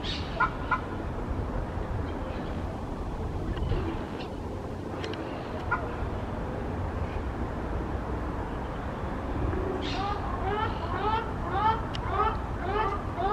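Ducks call with short, repeated nasal honks.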